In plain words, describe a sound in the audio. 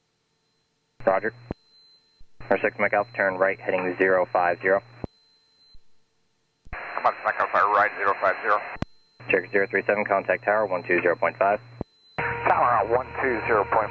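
A man explains calmly through a headset intercom.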